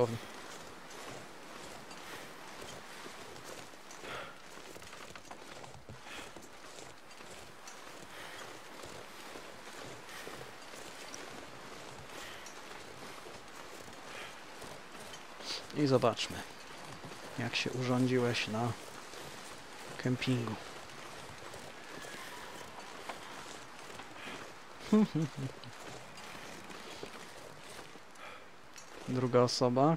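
Wind blows steadily over snow.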